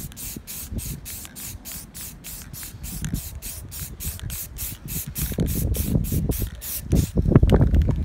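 A spray can rattles as it is shaken.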